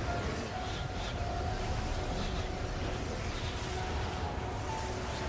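Explosions rumble with a deep, steady roar.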